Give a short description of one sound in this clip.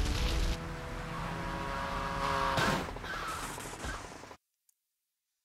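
A short game music jingle plays and fades out.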